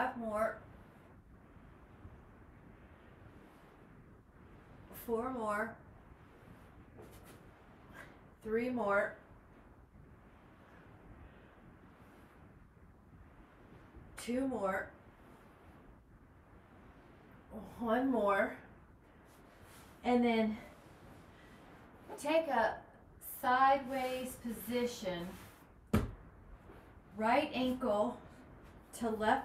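A woman speaks calmly in short phrases close by.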